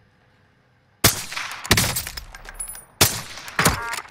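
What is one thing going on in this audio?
A sniper rifle fires sharp, booming shots.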